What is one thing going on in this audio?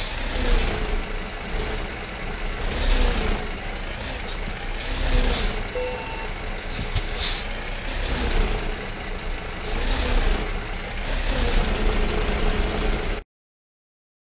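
A truck engine idles with a low rumble.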